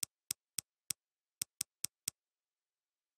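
Menu clicks tick several times.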